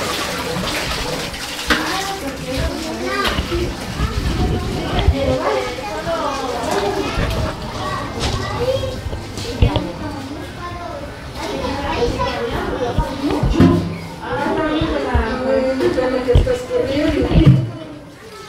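Several women talk with one another nearby in a room.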